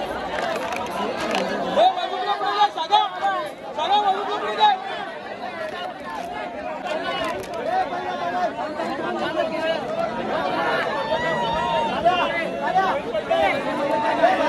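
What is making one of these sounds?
Men nearby shout excitedly to one another.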